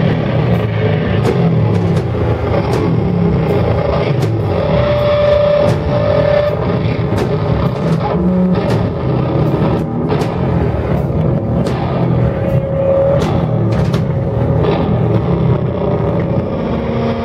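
A bass guitar rumbles deep and loud.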